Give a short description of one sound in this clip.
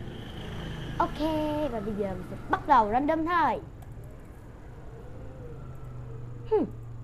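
A young boy speaks close to a microphone, with animated rising and falling tones.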